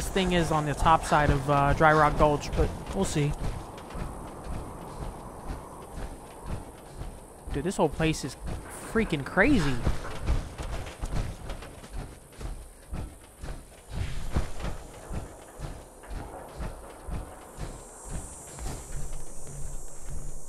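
Heavy metal footsteps thud steadily on the ground.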